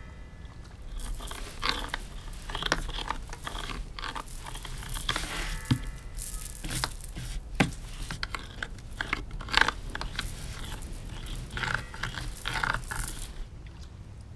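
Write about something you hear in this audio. Hands scrape and knock on a wooden table.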